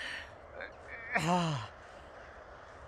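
A young man groans in pain.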